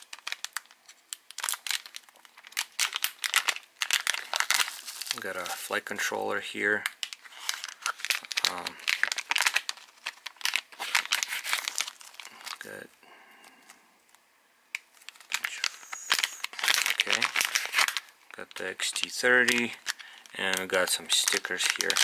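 Plastic bags crinkle and rustle as hands handle them.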